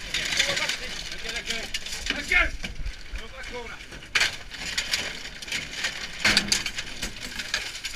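Plastic strips rattle and clatter as they are tossed into a metal bin.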